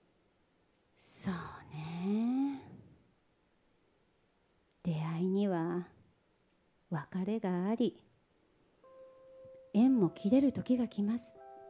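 A woman speaks expressively into a microphone, in bursts with pauses.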